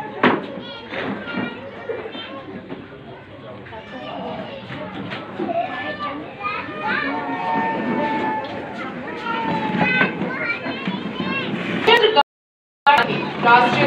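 A crowd of spectators chatters close by, outdoors.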